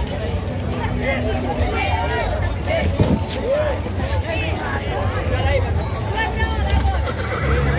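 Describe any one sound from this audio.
Horse hooves thud on grass.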